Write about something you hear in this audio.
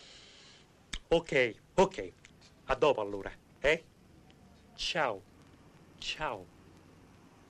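A man talks cheerfully into a phone.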